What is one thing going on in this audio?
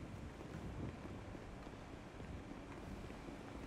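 Footsteps run on stone paving.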